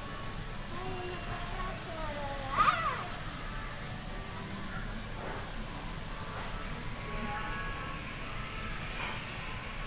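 A wooden spatula scrapes and stirs food in a metal pan.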